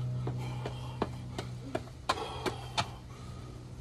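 Push-up handles knock on a concrete floor.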